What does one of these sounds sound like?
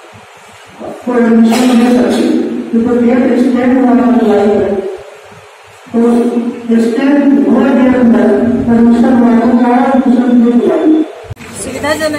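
A man speaks into a microphone over loudspeakers in an echoing hall.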